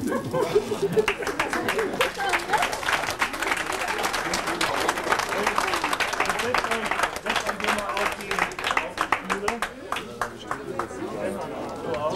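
A crowd applauds with many claps.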